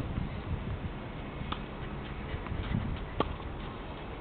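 A tennis racket strikes a ball on a serve outdoors.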